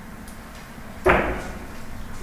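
A cue strikes a billiard ball with a sharp knock.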